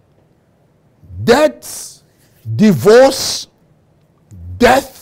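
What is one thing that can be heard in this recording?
An elderly man speaks expressively into a microphone, in short bursts with pauses.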